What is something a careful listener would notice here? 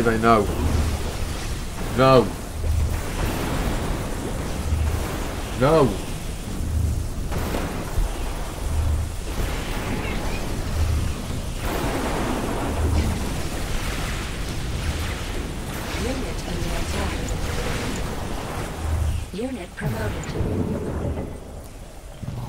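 Energy weapons zap and crackle in a battle.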